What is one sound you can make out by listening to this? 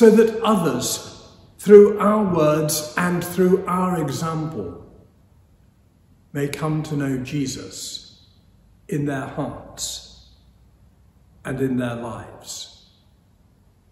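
An elderly man speaks calmly through a microphone in an echoing room.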